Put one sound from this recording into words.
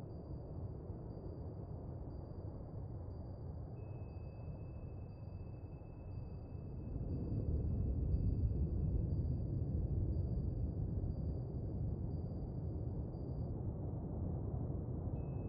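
A submarine's engines rumble deep and low underwater, swelling louder partway through.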